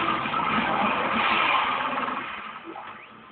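A monstrous creature snarls and thrashes in a close struggle.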